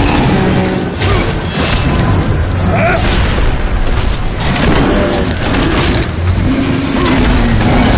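Huge creatures roar and growl.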